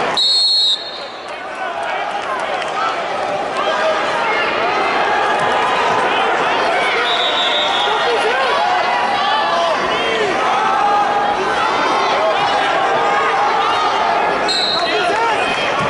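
A referee blows short whistle blasts.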